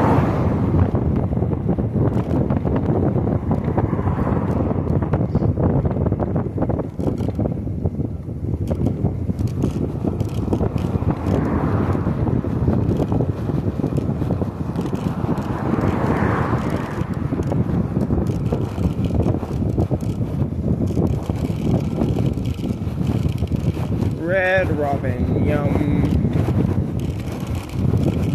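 Wind rushes loudly past while riding along a road.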